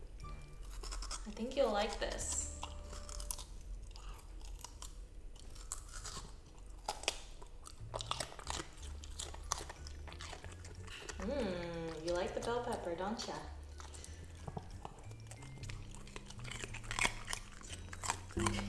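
A puppy crunches and chews on a vegetable.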